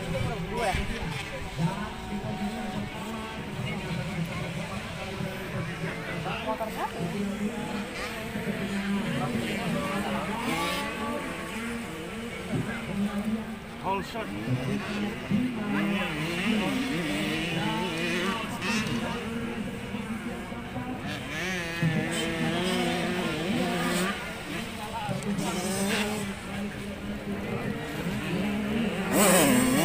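A motocross motorcycle engine revs loudly, rising and falling in pitch.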